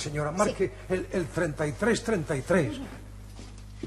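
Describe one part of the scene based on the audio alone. An elderly man speaks with feeling, close by.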